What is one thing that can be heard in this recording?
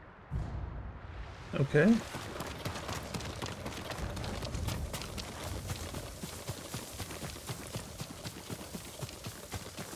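Footsteps crunch quickly over loose stones and grass.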